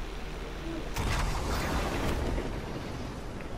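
An explosion bursts with a rumbling roar.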